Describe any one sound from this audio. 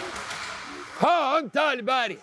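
A middle-aged man shouts loudly and excitedly close by.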